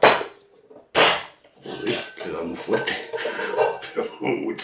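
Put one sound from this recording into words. Metal shaker tins clink and knock apart.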